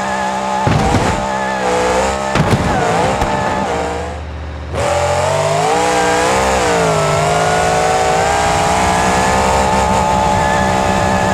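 A monster truck engine roars and revs.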